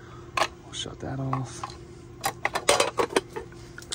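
A plastic disconnect block clicks out of a switch box.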